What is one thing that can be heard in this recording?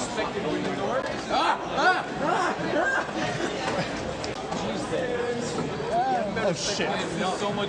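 Many young voices chatter in a busy echoing hall.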